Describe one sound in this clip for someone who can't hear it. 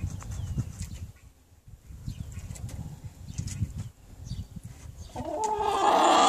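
A hen murmurs softly close by.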